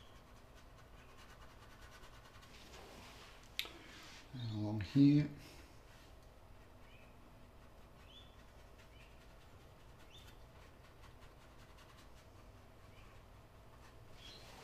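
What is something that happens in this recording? A paintbrush softly brushes across a canvas.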